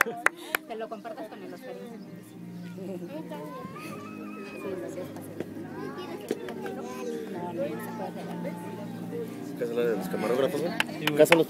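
Several people chatter nearby.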